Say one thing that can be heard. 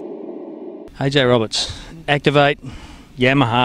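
A man asks questions into a microphone close by.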